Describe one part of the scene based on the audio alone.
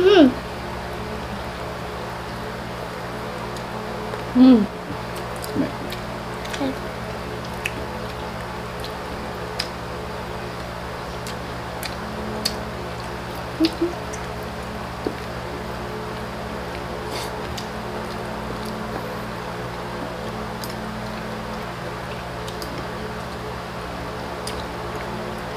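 People eat with their hands, with soft smacking and clicking sounds.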